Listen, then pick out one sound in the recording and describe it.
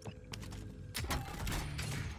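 A metal supply crate creaks open.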